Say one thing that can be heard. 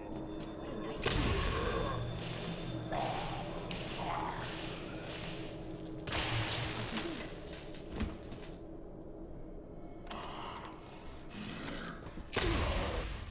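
Gunshots boom loudly and echo.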